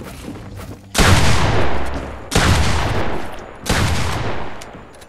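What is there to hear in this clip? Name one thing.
A shotgun fires three loud, booming blasts, each ringing out and fading.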